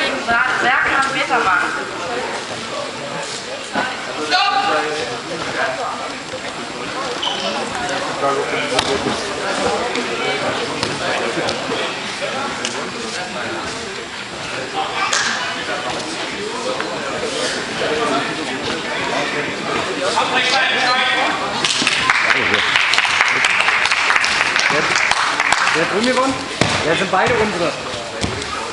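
Voices of a crowd of men and women call out and shout in a large echoing hall.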